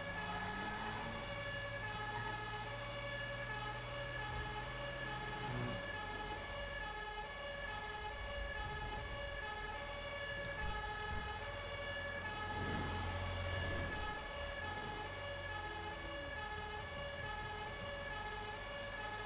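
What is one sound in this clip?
A diesel fire engine's engine rumbles as it drives.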